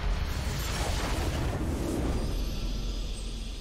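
A triumphant victory chime swells in a video game.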